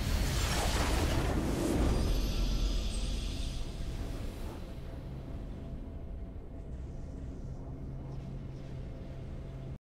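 A triumphant game fanfare plays and slowly fades.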